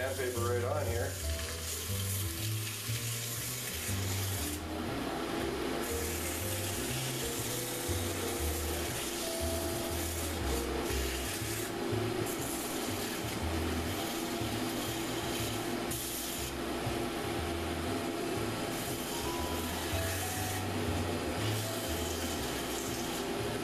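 Sandpaper rubs against spinning wood with a soft hiss.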